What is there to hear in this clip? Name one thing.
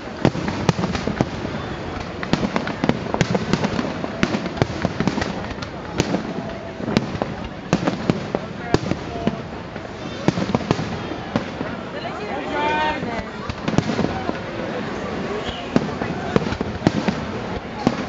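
Fireworks bang and crackle loudly outdoors.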